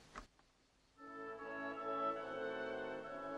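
Music starts playing from a record player.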